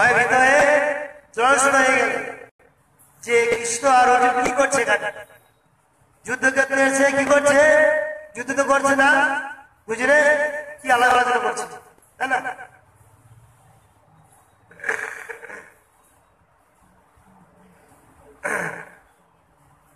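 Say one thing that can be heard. A man speaks into a microphone, heard through a loudspeaker in an echoing room.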